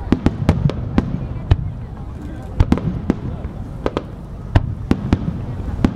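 Fireworks burst with loud, sharp bangs and crackles outdoors.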